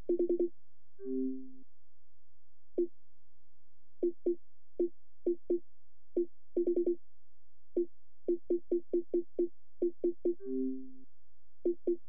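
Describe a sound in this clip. A short two-tone chime sounds twice.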